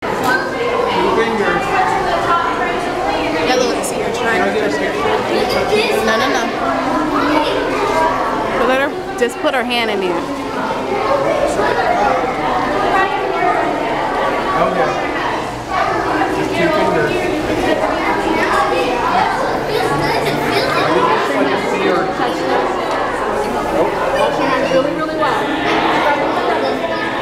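A crowd of children and adults chatters throughout.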